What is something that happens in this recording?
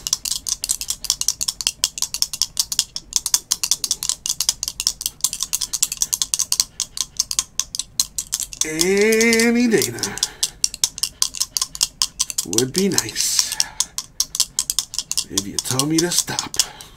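Trading cards flick and snap rapidly between hands.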